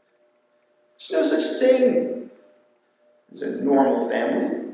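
A man speaks expressively into a microphone.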